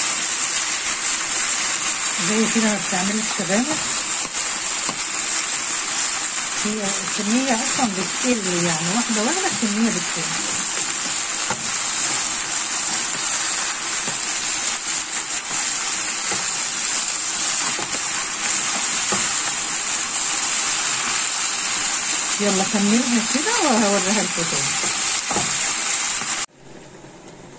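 Greens sizzle steadily in a hot frying pan.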